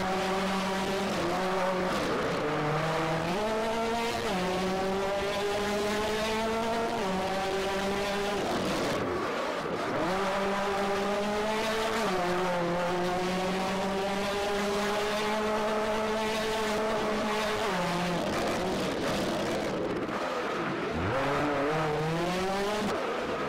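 A rally car engine roars and revs up and down through gear changes.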